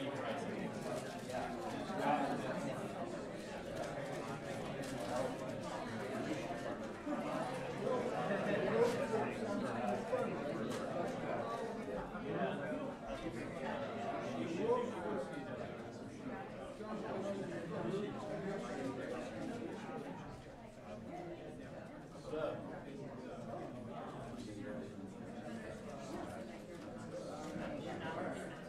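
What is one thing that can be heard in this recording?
A crowd of men and women chatter in a large room.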